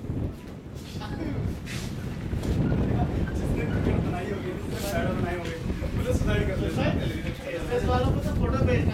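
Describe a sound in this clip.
Men talk and call out to each other at a distance outdoors.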